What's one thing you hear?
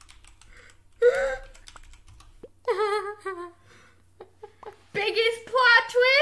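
A second young girl laughs close to a microphone.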